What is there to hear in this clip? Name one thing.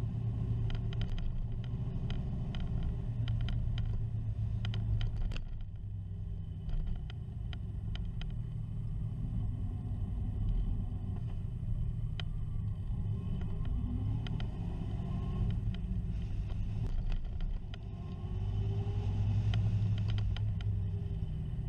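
A vehicle rattles and clicks over the road surface.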